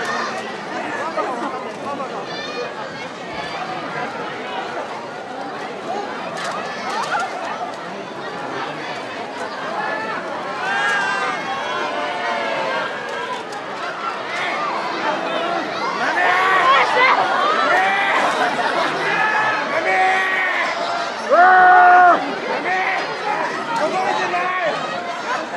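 A crowd of men and women shouts and cheers outdoors.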